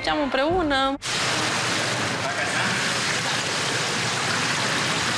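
Water sloshes and splashes in a pool.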